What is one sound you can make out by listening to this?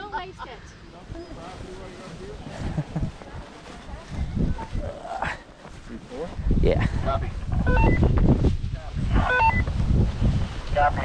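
A trailer rumbles and rattles as it is towed over bumpy grass.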